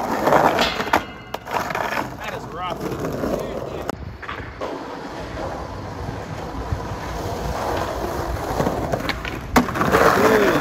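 A skateboard deck clacks sharply against the ground.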